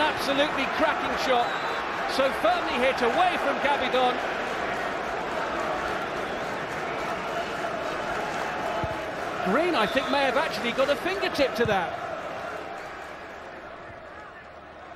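A large crowd roars and cheers in a stadium, fading toward the end.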